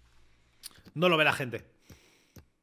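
A young man speaks briefly and with animation, close to a microphone.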